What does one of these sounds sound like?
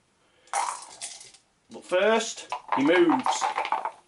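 Dice clatter into a plastic tray.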